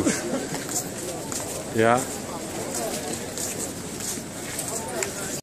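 A crowd murmurs and chatters all around, outdoors.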